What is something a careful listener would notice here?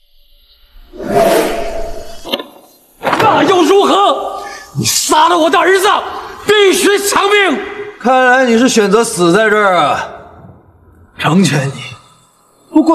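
An elderly man shouts angrily.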